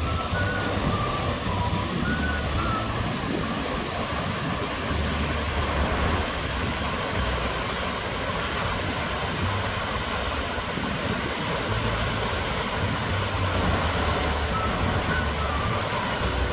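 Rushing water roars steadily over a weir.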